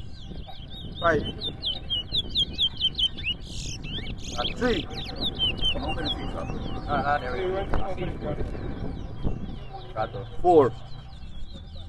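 Birds give loud, sweeping whistled calls now and then.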